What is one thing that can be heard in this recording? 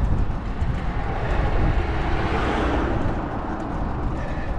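A car passes close by with a rising and fading whoosh.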